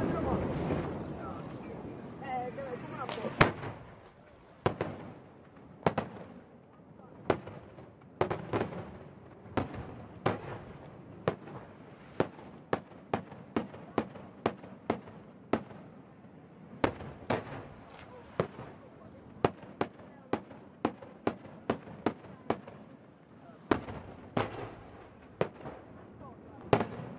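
Fireworks explode with sharp bangs, one after another.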